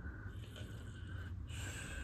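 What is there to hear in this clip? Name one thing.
An aerosol can hisses as it sprays.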